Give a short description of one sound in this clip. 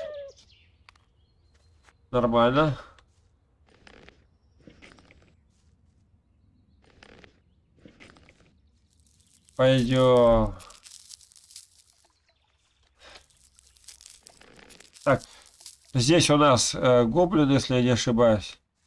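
Footsteps fall softly on grass.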